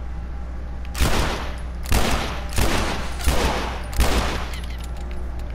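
Pistol shots ring out several times, sharp and loud.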